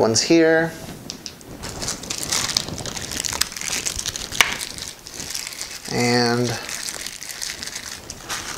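Plastic packaging crinkles and rustles in a man's hands.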